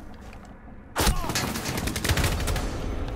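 Rapid gunshots fire close by.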